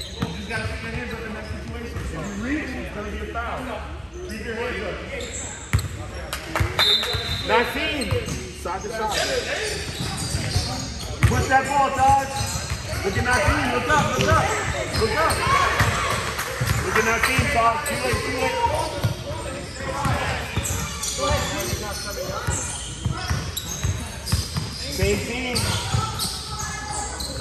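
Children shout and call out to one another in a large echoing hall.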